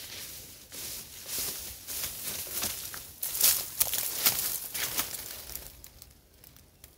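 Bird wings flutter against a cage.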